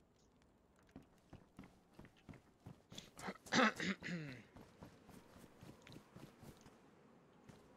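Footsteps thud on wooden boards and then on grass.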